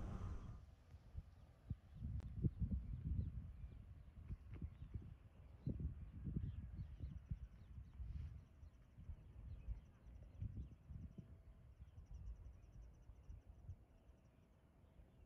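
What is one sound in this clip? Wind gusts blow in bursts outdoors, then die down.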